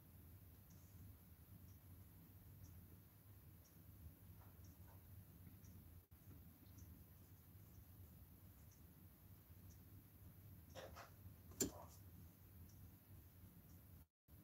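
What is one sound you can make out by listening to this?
A brush softly dabs and strokes.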